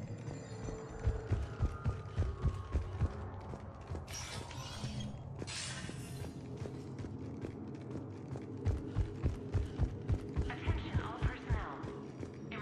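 Heavy armored footsteps clank on a metal floor.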